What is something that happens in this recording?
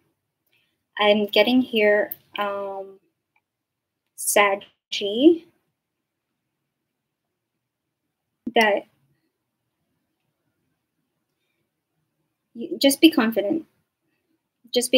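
A young woman speaks softly and calmly into a nearby microphone, in short phrases with pauses.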